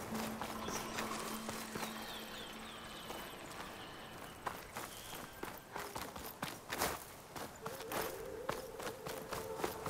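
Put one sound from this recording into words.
Tall grass rustles as a figure pushes through it.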